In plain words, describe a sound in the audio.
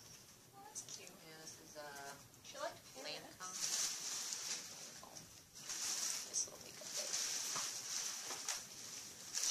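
Fabric rustles and crinkles as it is handled.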